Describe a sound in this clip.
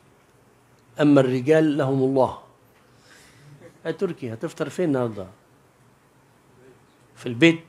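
A man speaks into a microphone in a measured, chanting way, with pauses between phrases.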